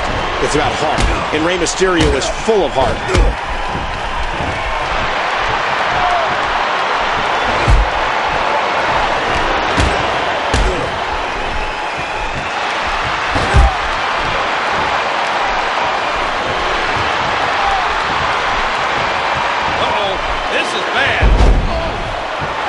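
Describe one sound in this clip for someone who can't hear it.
Heavy thuds ring out as bodies slam onto a wrestling ring mat.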